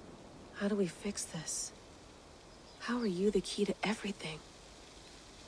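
A young woman speaks calmly and closely, asking questions.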